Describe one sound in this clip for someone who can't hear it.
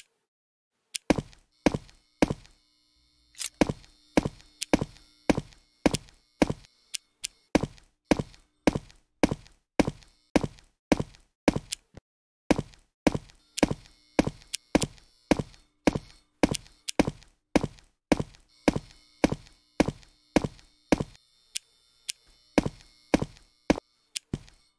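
Footsteps tread at a steady pace across a hard floor.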